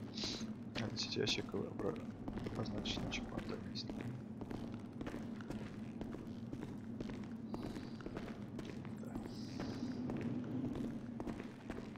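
Footsteps crunch on gravel between rails.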